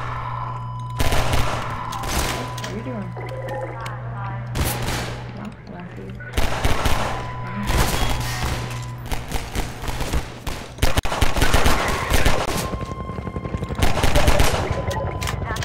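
Pistol shots crack in quick bursts, ringing off hard walls.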